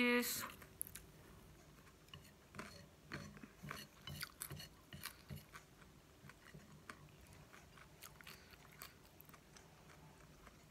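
A woman crunches and chews crisp vegetables close to a microphone.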